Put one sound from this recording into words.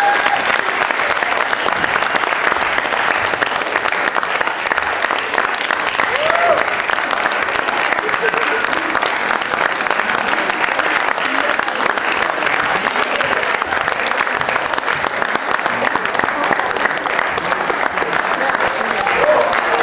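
An audience cheers and whoops.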